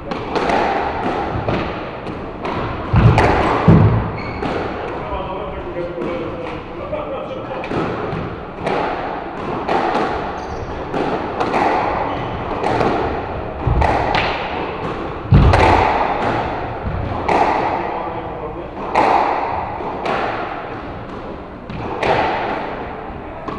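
A squash ball cracks off rackets in an echoing court.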